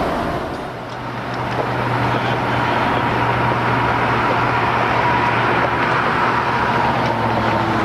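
A railway car rolls slowly along the tracks.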